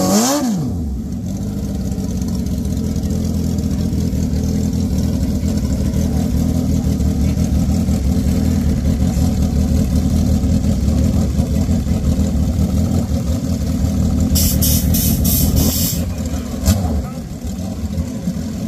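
Several motorcycle engines idle and rumble nearby.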